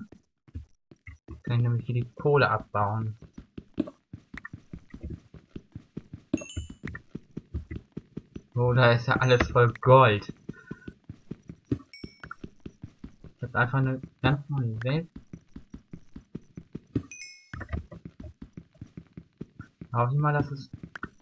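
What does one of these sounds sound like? A pickaxe taps rapidly on stone in a video game.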